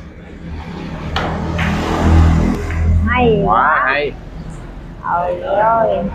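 Billiard balls click against each other and roll.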